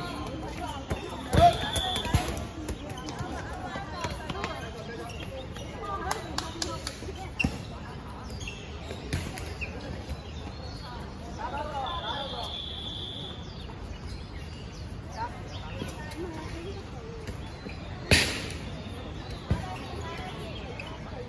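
Young women chat and call out nearby.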